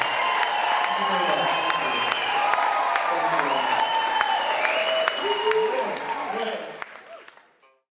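A rock band plays loudly with drums, guitars and keyboards, then fades out.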